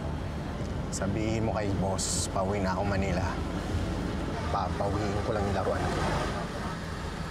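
A man talks calmly on a phone nearby.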